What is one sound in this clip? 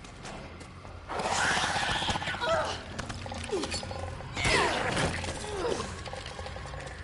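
A monster snarls loudly up close.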